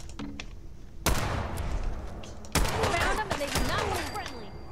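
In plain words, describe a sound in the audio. A gun fires loud shots that echo and rumble away.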